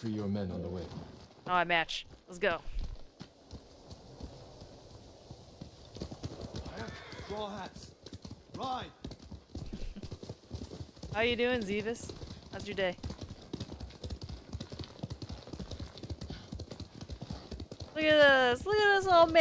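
Horses' hooves gallop over a dirt path.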